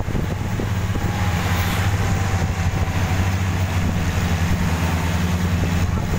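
An open off-road jeep's engine drones while cruising on a paved road.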